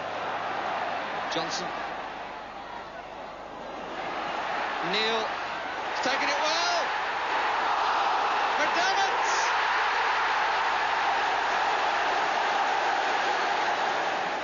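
A large stadium crowd roars loudly, swelling into a great cheer.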